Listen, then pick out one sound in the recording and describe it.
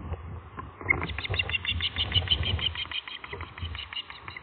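An osprey chick calls with rapid, repeated high chirps.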